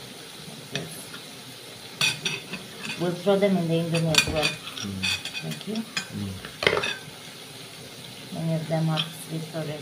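A knife taps against a plate.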